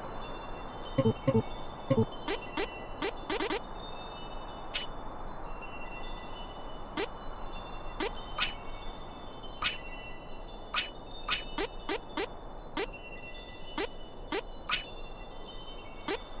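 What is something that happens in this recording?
Game menu sounds click and chime as selections change.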